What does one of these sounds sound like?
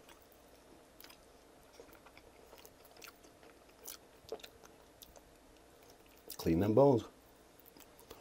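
A man sucks sauce off his fingers close to the microphone.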